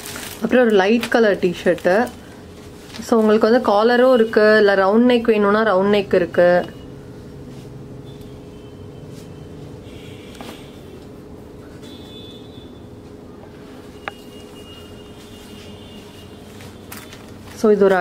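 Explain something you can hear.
Plastic wrapping crinkles as a shirt is handled.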